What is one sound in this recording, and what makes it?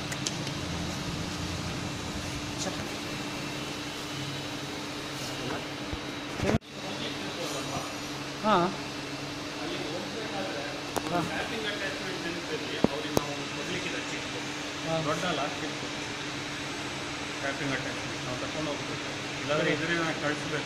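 Heavy machinery hums steadily in a large echoing hall.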